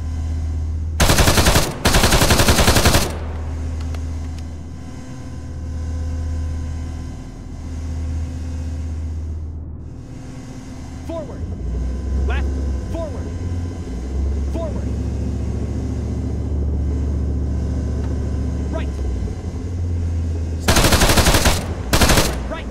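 A heavy machine gun fires loud, rapid bursts.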